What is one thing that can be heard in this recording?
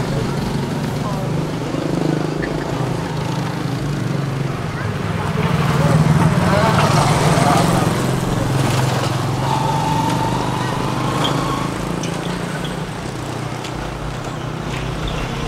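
A motorbike engine hums steadily while riding along.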